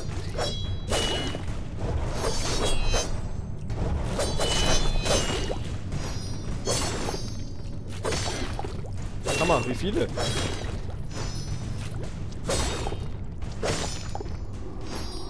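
Blades swish and slash rapidly in a video game fight.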